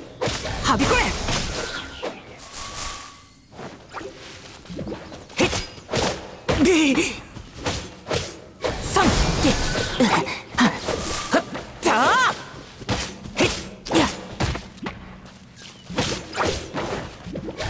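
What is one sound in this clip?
Sword slashes and magic blasts crackle in quick bursts.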